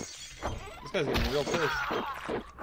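A glass bottle strikes a man with a heavy thud.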